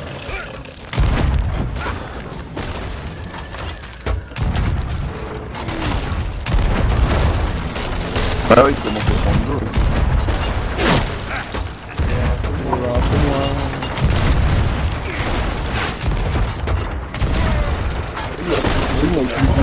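Cannons fire with deep booms.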